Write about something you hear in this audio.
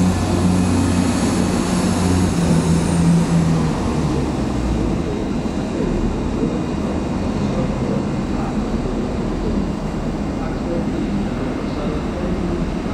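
A diesel train engine hums and rumbles as the train pulls slowly along the track.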